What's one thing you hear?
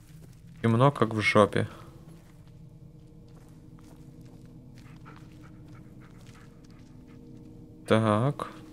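Footsteps crunch softly on a dirt trail.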